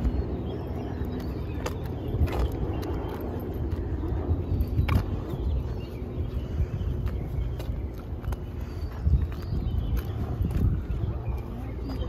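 Footsteps tap along a paved walkway.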